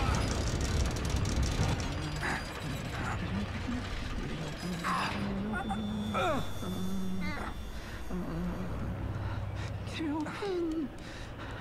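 A heavy metal valve wheel creaks and grinds as it turns.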